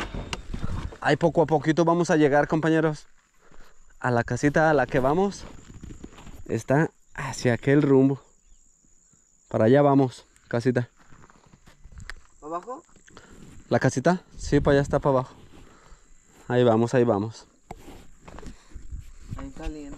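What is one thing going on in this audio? A man talks calmly and close by, between pauses.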